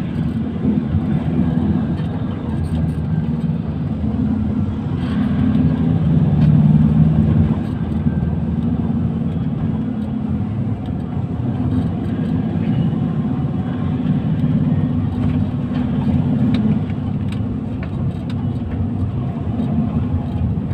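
A vehicle engine rumbles steadily from inside a moving vehicle.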